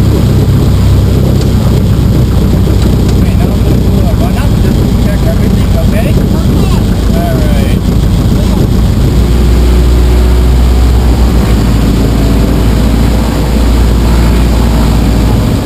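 A small plane's engine drones loudly and steadily.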